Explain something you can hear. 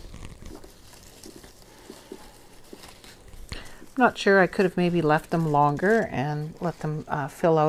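Leafy plants rustle softly as they are pulled and handled.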